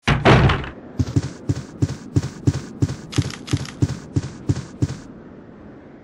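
Footsteps thud quickly on a wooden floor.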